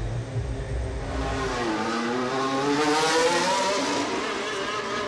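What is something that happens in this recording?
A racing car engine roars past at speed.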